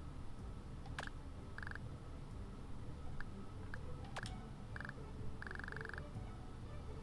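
Short electronic blips chatter quickly in bursts.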